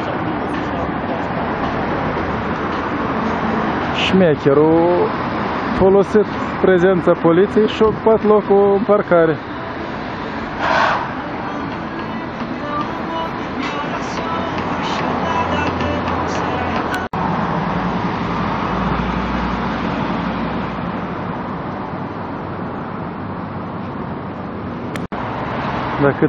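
Traffic hums steadily along a street outdoors.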